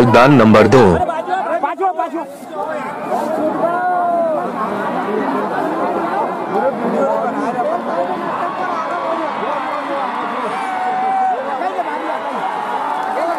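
A large crowd shouts and cheers outdoors.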